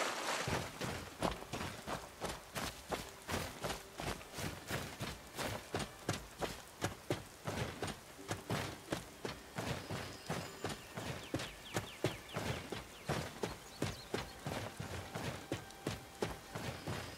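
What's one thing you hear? Footsteps tread through grass and earth.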